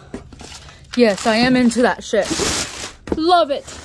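Packing paper crinkles and rustles.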